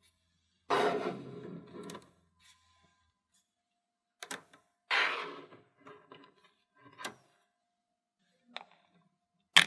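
Small magnetic balls click and rattle as they snap together.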